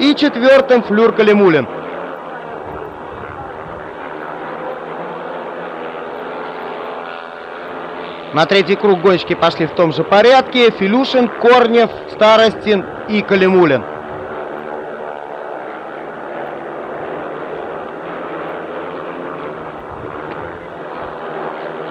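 Speedway motorcycle engines roar around a dirt track.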